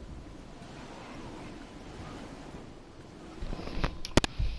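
Wind rushes past steadily during a glide through the air.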